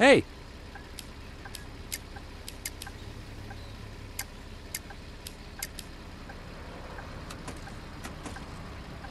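A ticket machine gives short, sharp clicks as its buttons are pressed.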